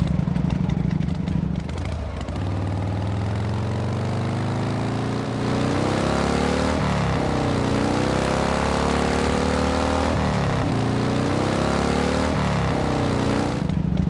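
A motorcycle engine hums and revs up and down as it rides along.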